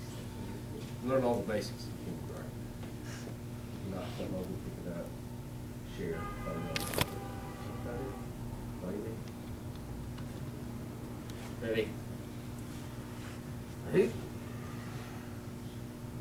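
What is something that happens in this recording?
An elderly man speaks calmly to a group, heard from a short distance.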